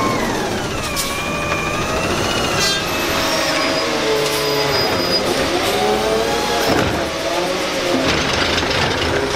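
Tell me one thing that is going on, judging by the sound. Hydraulics whine with shifting pitch as a truck's arm lifts a bin.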